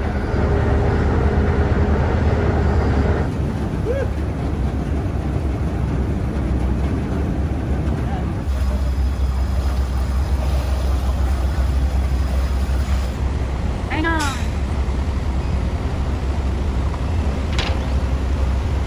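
Water churns and splashes against a boat's hull.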